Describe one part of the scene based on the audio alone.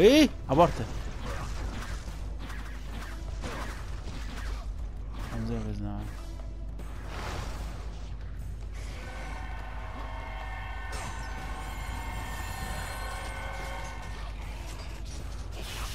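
Blades swing and slash in a fight.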